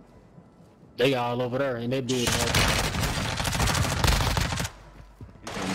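Gunfire bursts loudly and rapidly.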